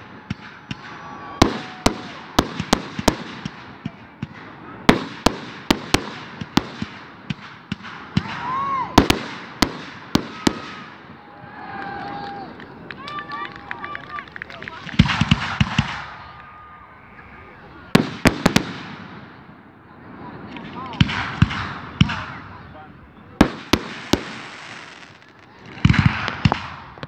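Fireworks crackle and fizz after bursting.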